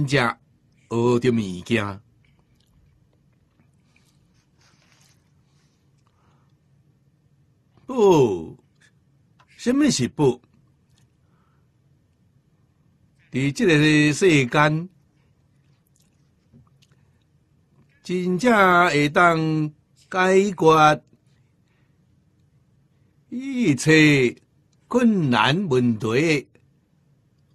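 An elderly man speaks calmly into a microphone in short phrases with long pauses.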